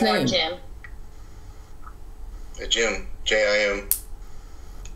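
A woman speaks briefly over an online call, in short bursts.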